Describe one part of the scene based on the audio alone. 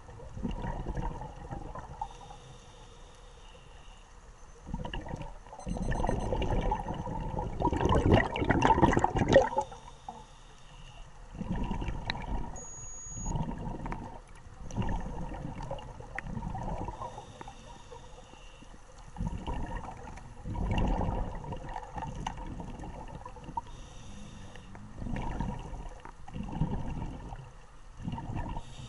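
A diver breathes loudly through a regulator underwater.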